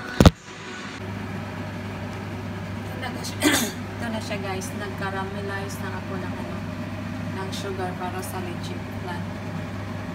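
Sugar sizzles faintly in a hot pan.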